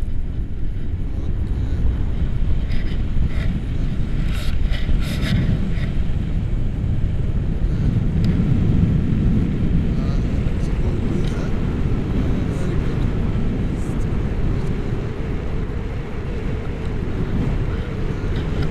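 A man talks close by, raising his voice over the wind.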